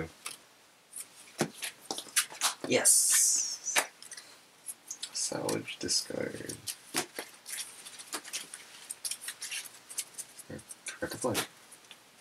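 Playing cards tap and slide on a mat.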